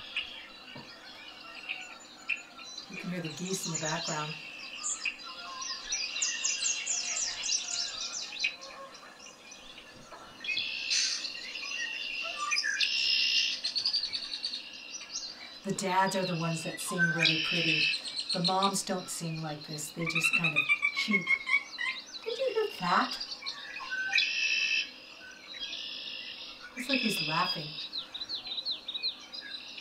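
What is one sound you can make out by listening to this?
A blackbird's harsh trilling calls play from a small speaker.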